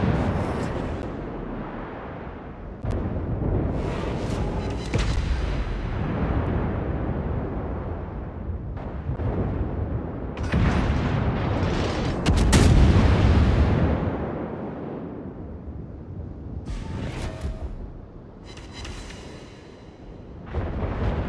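Heavy naval guns fire in loud booming salvos.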